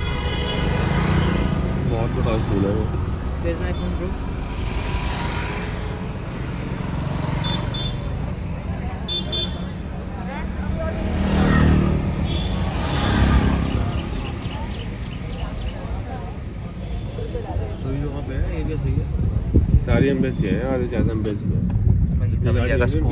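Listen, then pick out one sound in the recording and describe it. Traffic hums and rumbles on a busy street outdoors.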